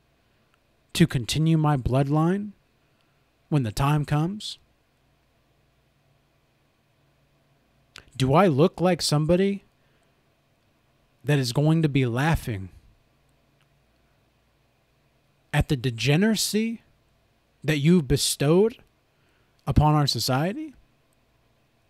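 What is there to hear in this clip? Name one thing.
A young man speaks calmly and closely into a microphone, in short phrases with pauses.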